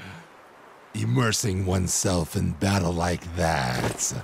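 A deep-voiced man speaks with a gruff growl.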